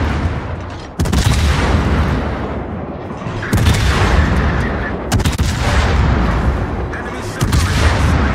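Heavy ship guns fire in loud, booming salvos.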